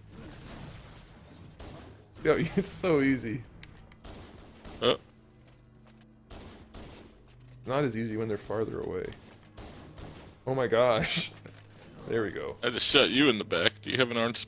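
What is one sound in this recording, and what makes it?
An energy pistol fires in quick bursts.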